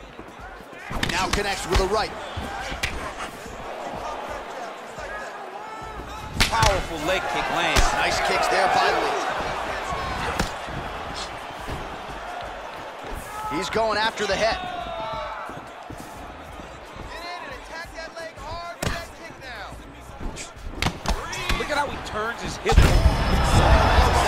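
Punches and kicks land with sharp thuds.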